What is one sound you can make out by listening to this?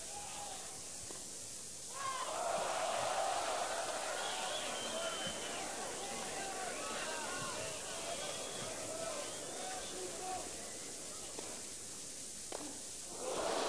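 A tennis ball is hit back and forth with sharp pops.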